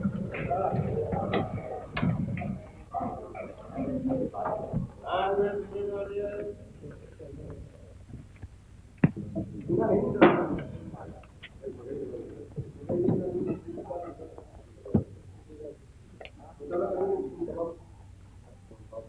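A crowd of men chatter and call out nearby.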